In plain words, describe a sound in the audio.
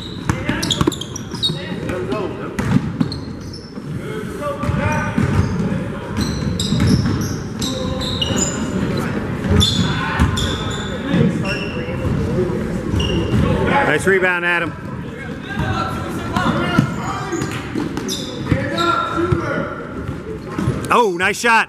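Boys and adults chatter and call out in a large echoing hall.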